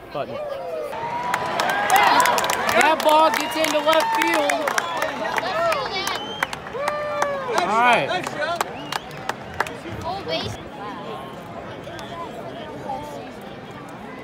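A large crowd cheers and shouts outdoors, loudest early on and then dying down.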